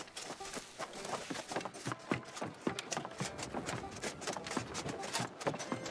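Footsteps thud steadily on wooden planks.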